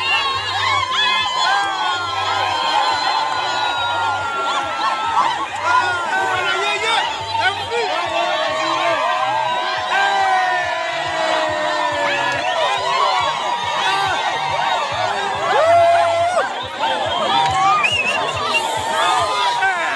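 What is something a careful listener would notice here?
A crowd sings together with excitement.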